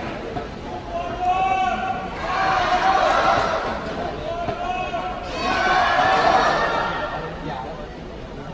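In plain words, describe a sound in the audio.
A crowd chants in bursts in a large hall.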